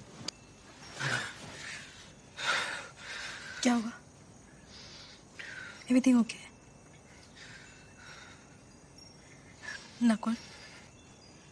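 A man speaks softly and briefly, close by.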